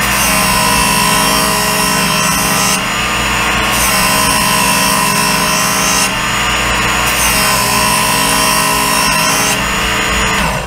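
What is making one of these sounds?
A knife blade grinds against a sharpening wheel in long strokes.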